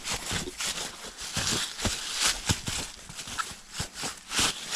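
Liquid pours and splashes onto dry leaves.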